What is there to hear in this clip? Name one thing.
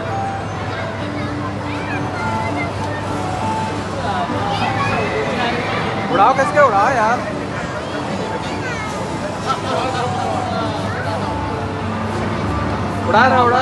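A crowd of people chatters in a busy indoor space.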